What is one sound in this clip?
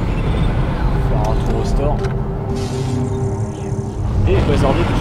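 A soft electronic hum sounds as a menu opens.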